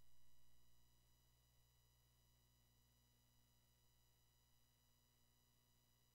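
An old video game gives off a faint, steady electronic hum.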